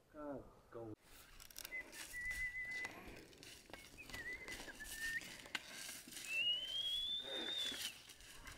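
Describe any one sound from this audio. A plough scrapes through dry leaves and soil.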